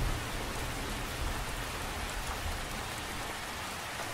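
Wind rumbles low and gusty, easing after a few seconds.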